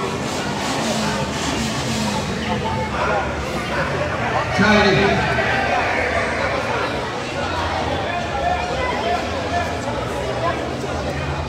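A crowd of spectators chatters and calls out.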